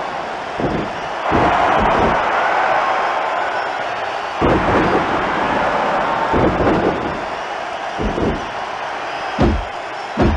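A crowd cheers loudly throughout.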